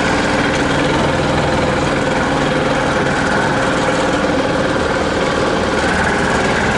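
A vehicle engine roars steadily, close by.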